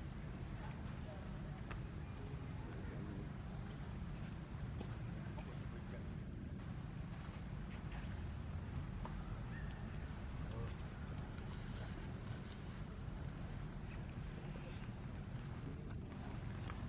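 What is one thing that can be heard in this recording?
Young monkeys give soft high squeaks close by.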